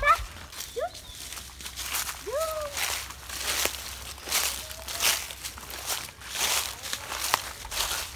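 Footsteps rustle through low leafy plants.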